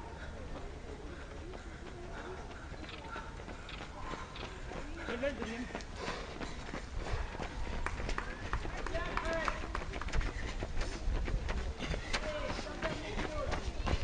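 Runners' footsteps patter on asphalt as they pass.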